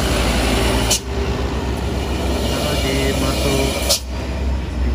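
A box truck drives past.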